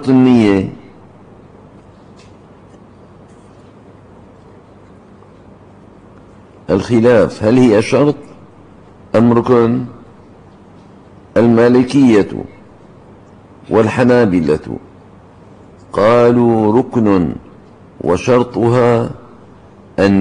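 An elderly man speaks slowly and solemnly into a microphone, in bursts with pauses.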